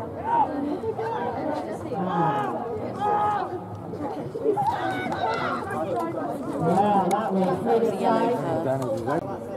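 A group of people talk and call out nearby.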